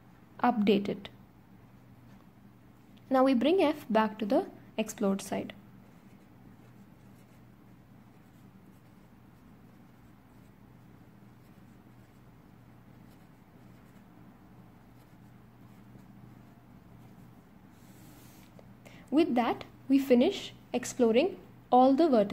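A marker squeaks faintly as it writes on paper.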